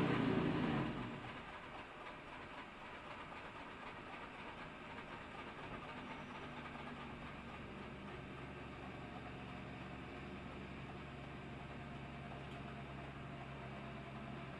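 A race car engine eases off to a low, steady drone.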